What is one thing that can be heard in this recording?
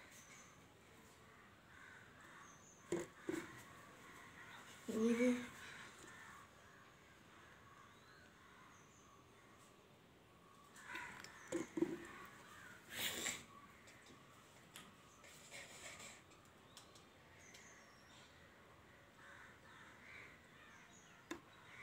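Juice pours from a plastic bottle into a glass.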